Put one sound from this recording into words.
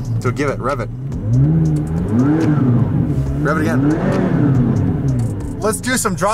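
A car engine revs up and down, heard from inside the car.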